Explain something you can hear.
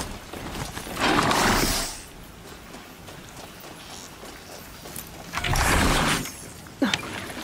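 A machine mount whooshes with a burst of rushing noise.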